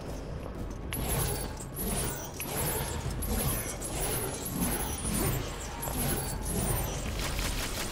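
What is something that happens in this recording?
Blades whoosh through the air again and again.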